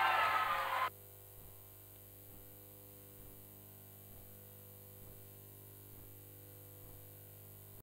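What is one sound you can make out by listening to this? Feet shuffle and tap softly on a canvas floor.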